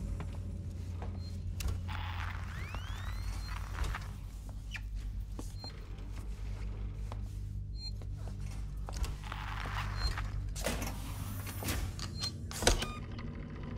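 A motion tracker beeps at a steady pace.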